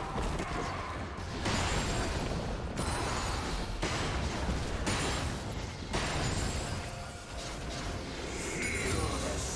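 Fantasy game combat effects clash and crackle with magical bursts.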